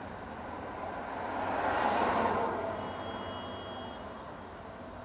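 A car drives past close by and fades away down the street.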